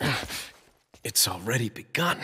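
A young man speaks in a strained, breathless voice.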